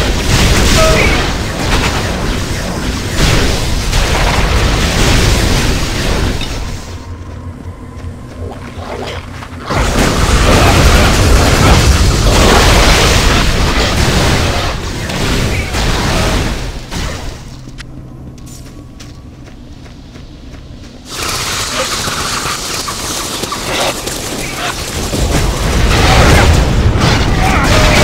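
Crackling magic blasts and electric zaps burst loudly.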